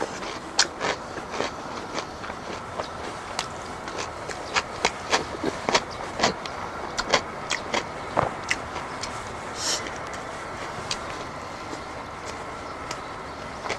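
A man chews and slurps food loudly, close up.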